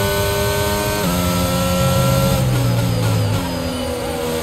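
A racing car engine slows and downshifts before a corner.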